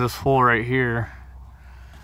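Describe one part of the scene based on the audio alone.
A tool clicks and taps against thin sheet metal.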